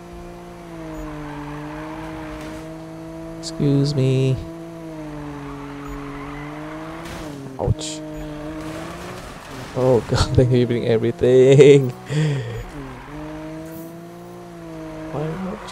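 A car engine hums steadily and shifts in pitch.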